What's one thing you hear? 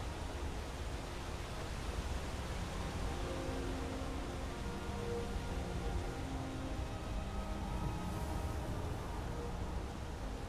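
Footsteps thud softly on grass and rock.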